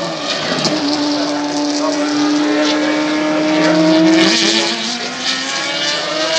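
A racing car engine screams loudly as the car speeds past.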